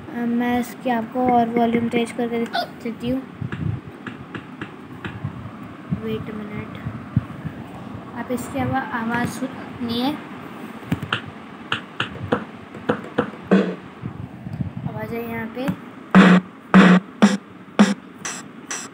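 Handling knocks and taps against a plastic keyboard casing.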